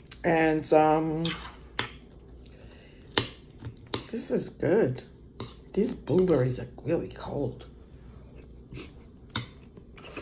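A spoon clinks against a ceramic bowl.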